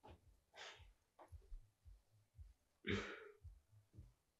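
A man laughs softly nearby.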